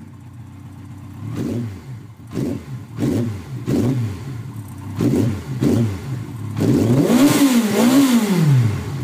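A motorcycle engine revs in short bursts, then in longer rising and falling revs.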